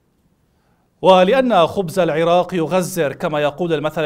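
A man speaks calmly and clearly into a microphone.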